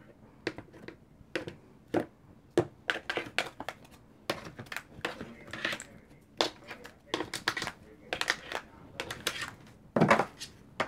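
Cards tap and slide onto a hard table.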